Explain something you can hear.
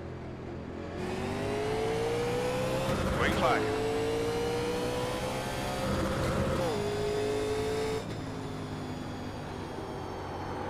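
A race car engine roars, rising in pitch as it speeds up and shifts gears.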